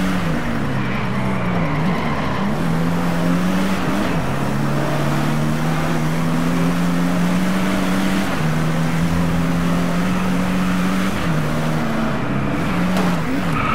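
A sports car engine roars as it accelerates and shifts gears.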